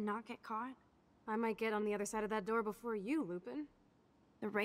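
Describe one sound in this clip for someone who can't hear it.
A young woman speaks calmly and teasingly, close by.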